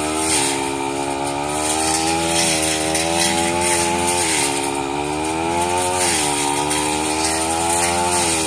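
A petrol brush cutter engine whines loudly and rises and falls in pitch.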